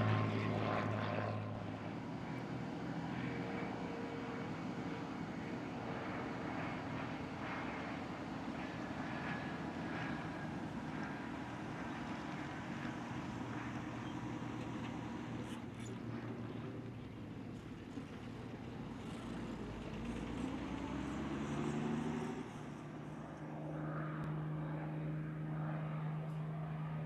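A propeller plane's engine drones and roars as it passes low and takes off.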